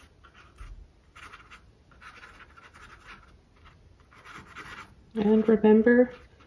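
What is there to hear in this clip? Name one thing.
A brush softly dabs and scrapes on canvas.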